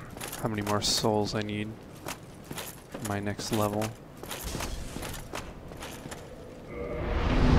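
Armoured footsteps clank on stone.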